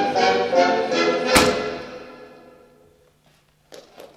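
Shoes stamp hard on a wooden stage.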